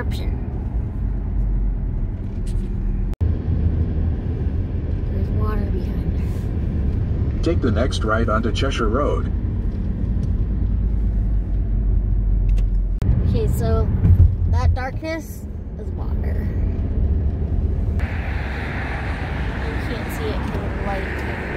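A car drives along a road with a steady low rumble, heard from inside.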